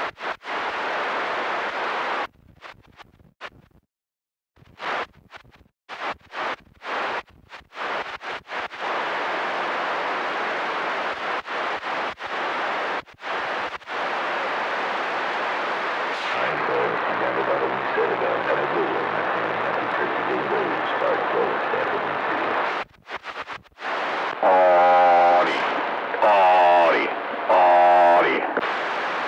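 Radio static hisses loudly and cuts in and out.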